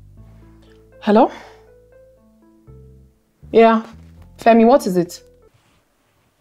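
A young woman speaks close by, sounding puzzled and questioning.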